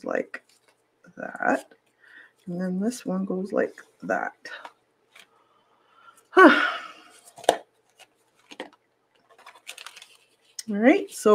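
Paper rustles and crinkles softly under fingers.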